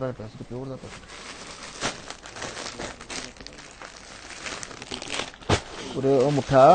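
A plastic wrapper crinkles and rustles.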